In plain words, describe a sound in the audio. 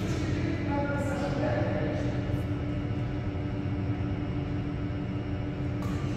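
Badminton rackets strike a shuttlecock with sharp pops in an echoing hall.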